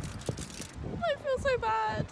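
A young woman speaks expressively close by.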